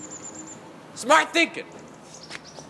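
A young man calls out loudly outdoors.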